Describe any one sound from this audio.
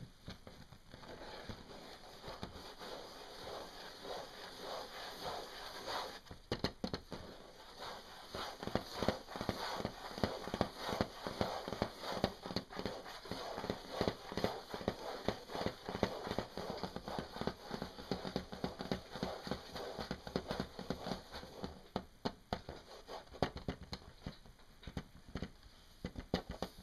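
Hands rub and rustle against fabric.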